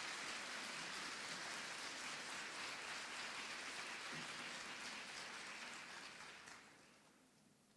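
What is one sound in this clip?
An audience applauds loudly in a large echoing hall, then the applause fades away.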